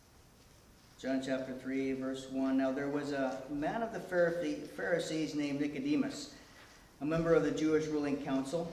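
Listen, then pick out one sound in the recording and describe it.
A middle-aged man speaks calmly into a microphone over loudspeakers in an echoing room.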